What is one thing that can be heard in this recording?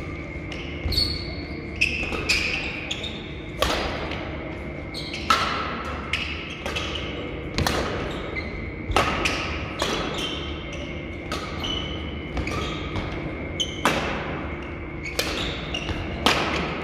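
Sneakers squeak on a sports floor.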